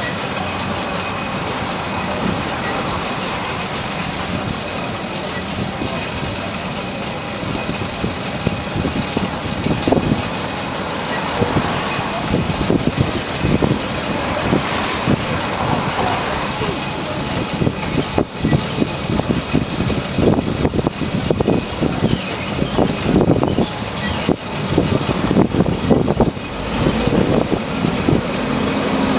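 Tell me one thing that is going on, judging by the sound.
Wind rushes past from a moving bicycle, loud and buffeting.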